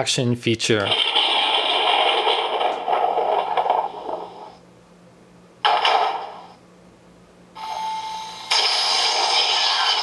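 A small toy speaker plays tinny sound effects in bursts.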